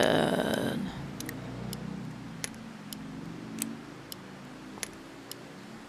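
A revolver's cylinder clicks as it is loaded.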